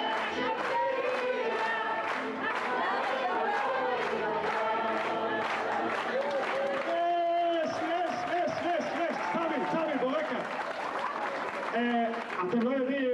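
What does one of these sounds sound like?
An elderly woman sings loudly into a microphone through a loudspeaker.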